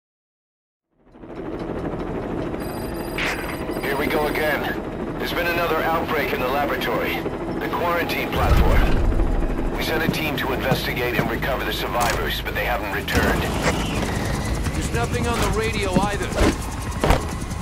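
A helicopter engine drones steadily close by.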